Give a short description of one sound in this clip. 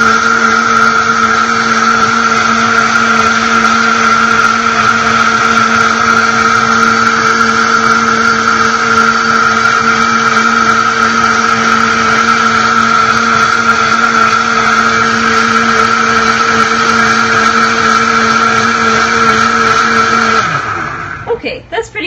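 A blender whirs loudly and steadily, then winds down.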